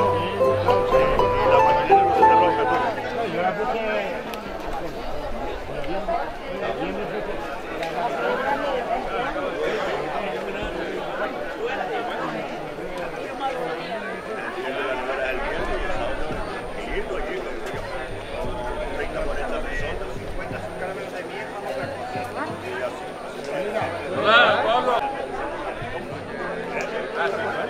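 A crowd of people chatters outdoors.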